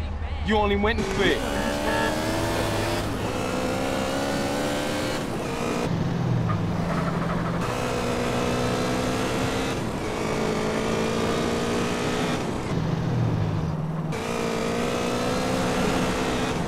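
A motorcycle engine revs and hums steadily as the bike speeds along.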